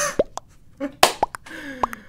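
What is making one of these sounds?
A young man laughs into a close microphone.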